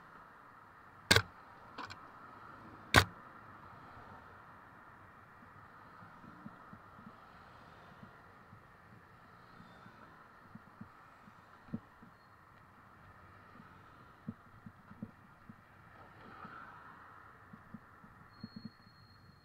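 Traffic rumbles steadily along a wet road nearby.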